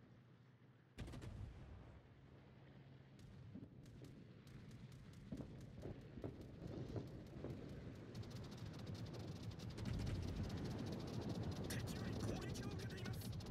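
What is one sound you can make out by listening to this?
Shells explode with rumbling blasts.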